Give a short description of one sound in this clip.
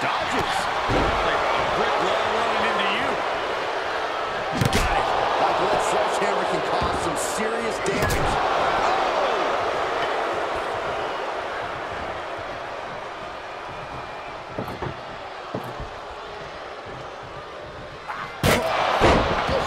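Bodies slam heavily onto a wrestling mat with deep thuds.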